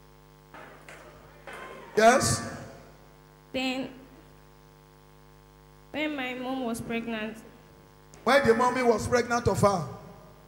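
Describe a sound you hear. An elderly woman speaks into a microphone, heard through loudspeakers.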